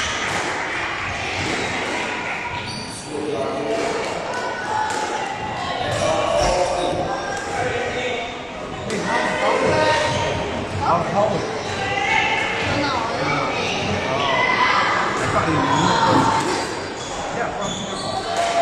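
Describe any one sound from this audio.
A squash ball smacks against walls and rackets, echoing around a hard-walled court.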